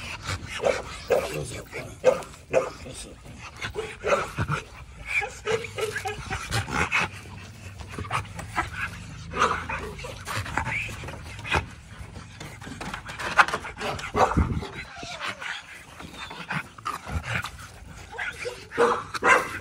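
Paws scrape and scuffle on dry dirt.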